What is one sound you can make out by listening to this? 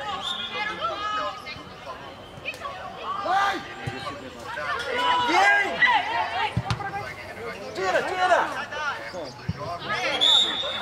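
Children shout and call out excitedly across an open field.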